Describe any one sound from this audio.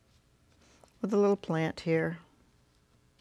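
An elderly woman speaks calmly and clearly into a close microphone.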